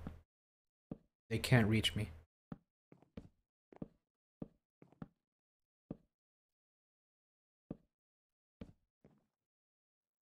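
Wooden blocks knock softly as they are placed, one after another.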